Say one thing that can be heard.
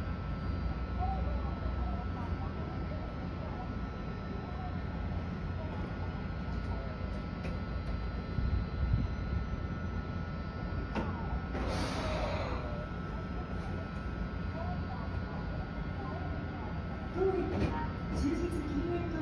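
An electric train hums steadily while standing.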